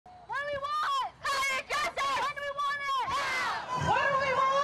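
A young woman shouts chants through a megaphone.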